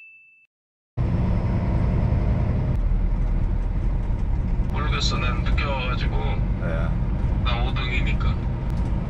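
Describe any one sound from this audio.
A vehicle's engine rumbles steadily as it drives along.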